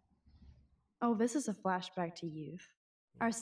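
A young woman speaks calmly and softly.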